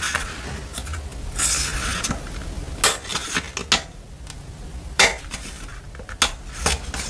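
Paper pages rustle and flip as fingers turn through a small notebook, close by.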